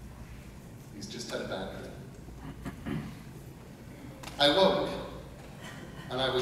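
A man reads aloud calmly into a microphone, heard through loudspeakers in a large room.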